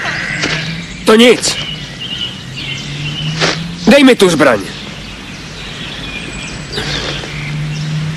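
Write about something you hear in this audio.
A man talks loudly outdoors.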